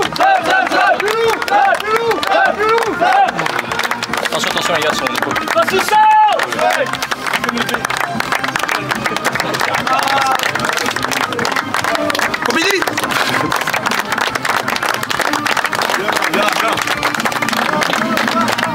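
Many people clap their hands steadily, close by.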